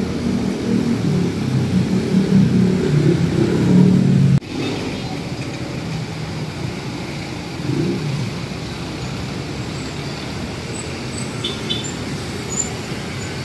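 Small motorcycles ride past on a street.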